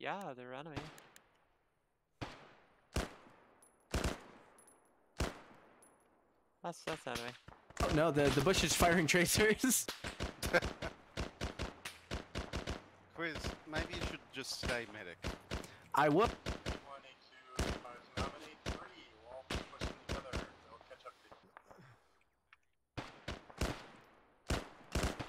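A rifle fires loud shots that echo outdoors.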